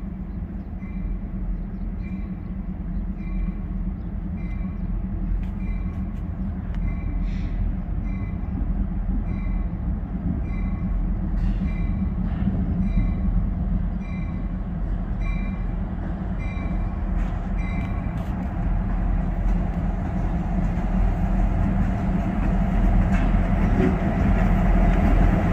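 A diesel train engine rumbles as the train approaches and grows louder.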